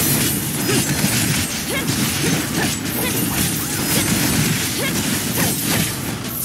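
Sword slashes and hits land in rapid succession.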